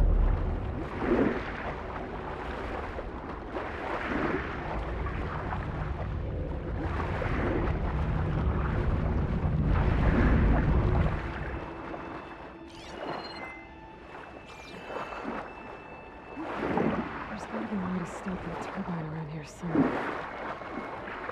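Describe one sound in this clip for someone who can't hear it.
Water swishes in bursts with each swimming stroke.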